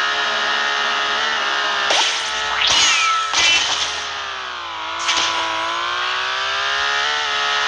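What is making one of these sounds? A kart's engine hums steadily, its pitch dipping and rising.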